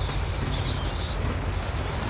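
Footsteps ring on a metal grating.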